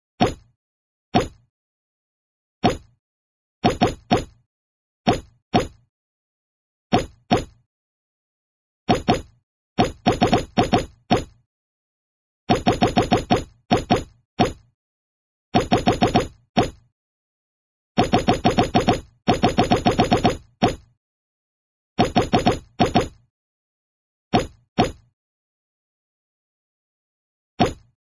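Short electronic tap sounds from a mobile game's menu play in quick bursts as items are selected.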